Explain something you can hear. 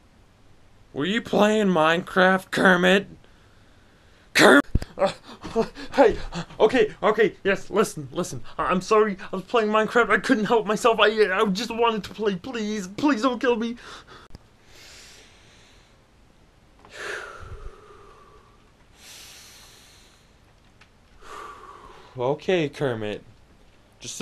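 A young man talks close to the microphone with animation.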